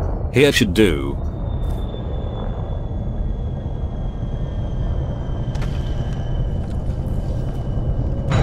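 A spacecraft engine rumbles low and steadily.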